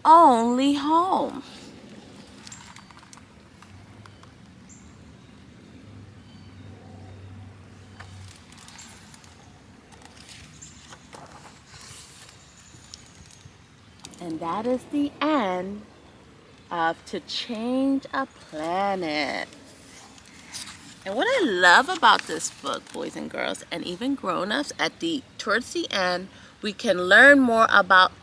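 A young woman reads aloud expressively, close by.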